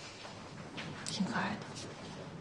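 A young woman speaks warmly and gently.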